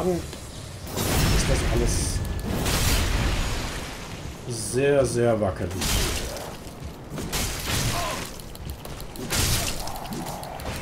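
Swords clash and strike with loud metallic hits.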